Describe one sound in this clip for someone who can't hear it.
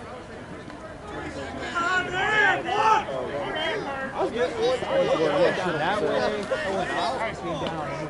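Several men shout and call out loudly outdoors.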